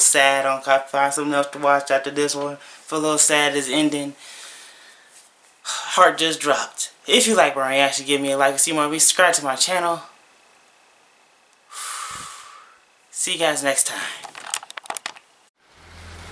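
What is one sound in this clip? A young man talks casually and closely into a microphone.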